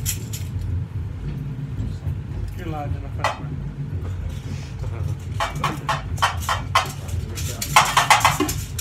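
A group of people murmur and chat in a room.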